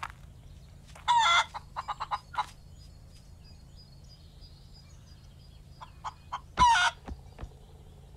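A hen clucks close by.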